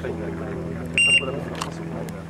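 An electronic shot timer beeps.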